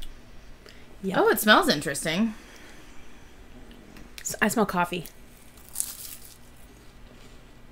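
A woman crunches a crispy snack.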